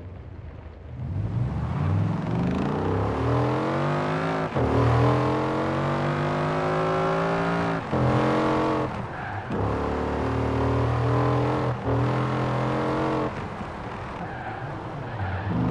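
A car engine revs hard, climbing in pitch and dropping briefly with each gear change.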